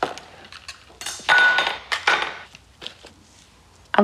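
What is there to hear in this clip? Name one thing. A knife cuts strawberries on a board.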